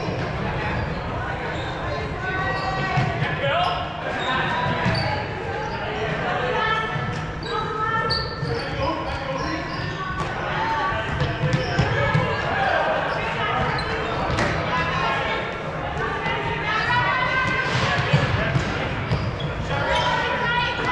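Young people shout and call out to each other in a large echoing gym.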